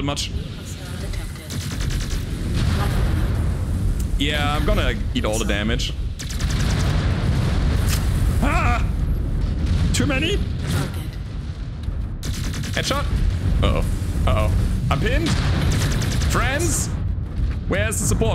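Weapons fire with loud rumbling booms.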